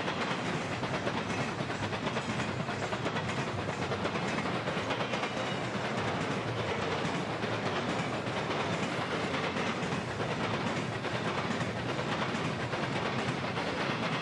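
A freight train rumbles past close by, its wheels clattering on the rails.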